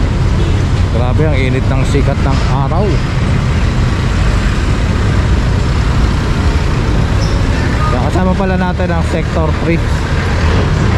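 A man speaks nearby in short bursts.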